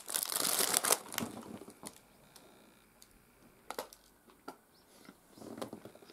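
A paper packet rustles as it is moved.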